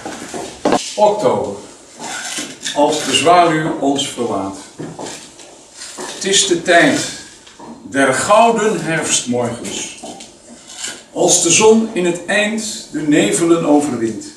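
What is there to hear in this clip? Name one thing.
An elderly man speaks calmly, reading out to an audience.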